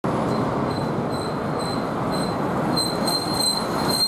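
A bus pulls up and stops.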